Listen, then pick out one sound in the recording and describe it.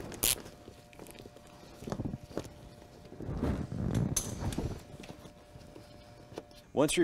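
A ratchet wrench clicks as it turns.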